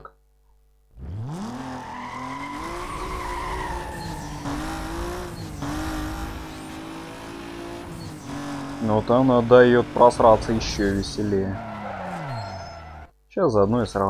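A car engine revs hard and rises in pitch as it speeds up.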